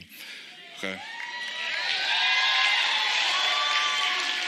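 An audience cheers and whistles.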